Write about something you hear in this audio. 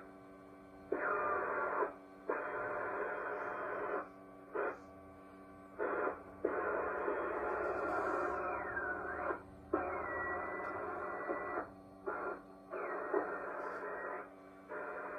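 A whistling tone glides and wavers through radio static.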